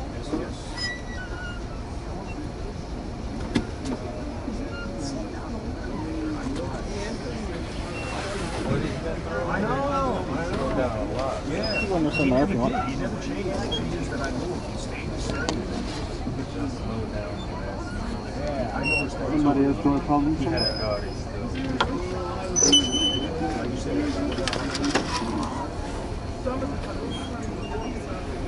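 A subway train rumbles steadily along the tracks through an echoing underground station.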